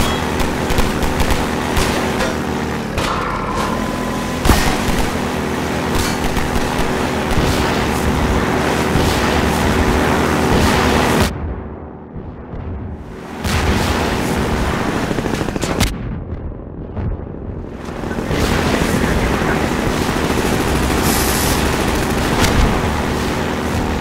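Water splashes and sprays against a boat hull.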